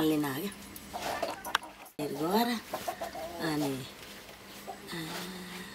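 An elderly woman speaks expressively, close by.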